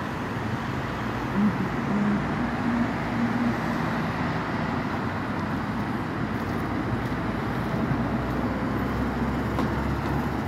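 Cars drive past on a nearby road with a steady roar of tyres.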